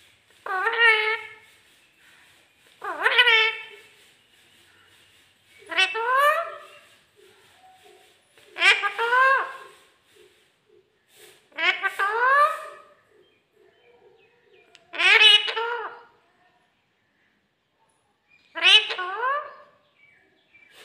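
A parrot squawks loudly and repeatedly, close by.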